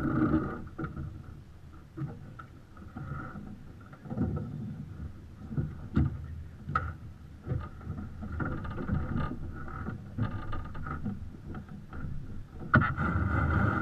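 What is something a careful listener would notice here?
Ropes and gear knock and click on a sailboat deck.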